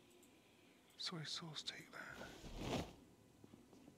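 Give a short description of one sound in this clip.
A cupboard door opens with a wooden clatter.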